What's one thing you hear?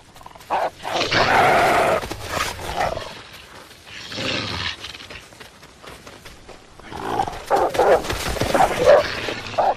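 Heavy hooves crunch through snow.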